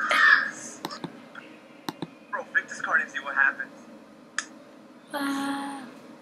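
A young boy speaks softly close to a microphone.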